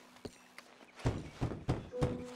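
Knuckles knock on a wooden door.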